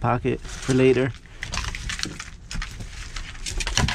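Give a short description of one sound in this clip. Plastic packaging crinkles as a gloved hand picks it up.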